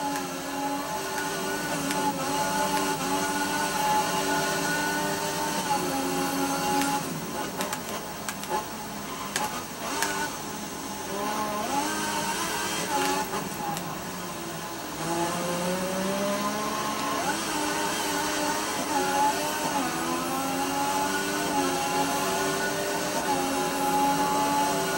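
A racing car engine whines at high revs, dropping in pitch when braking and rising again as it speeds up.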